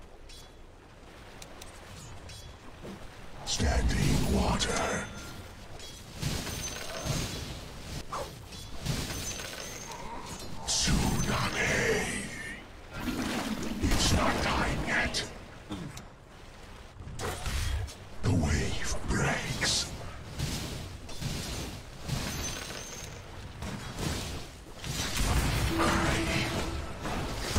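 A young man talks close to a microphone with animation.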